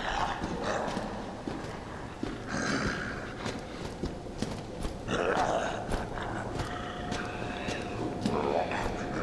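Footsteps splash slowly on a wet floor in an echoing space.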